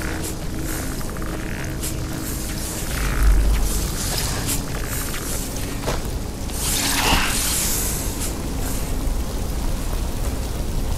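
Footsteps scrape over rocky ground.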